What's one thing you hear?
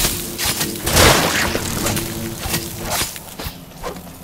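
A blade swishes as it slashes through the air.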